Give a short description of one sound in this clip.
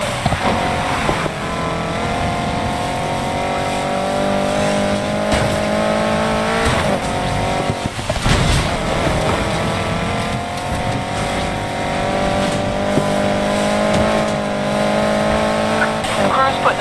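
A racing car engine roars loudly, its pitch rising through the gears.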